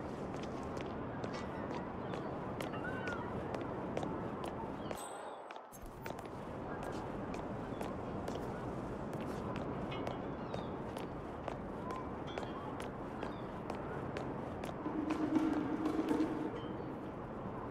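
Footsteps tap steadily on cobblestones.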